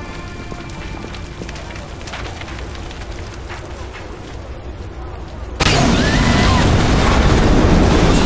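Fire crackles nearby.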